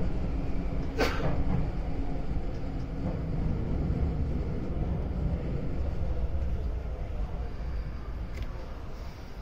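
A train's wheels clack over rail joints.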